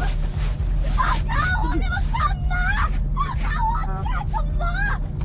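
A young woman cries out in distress.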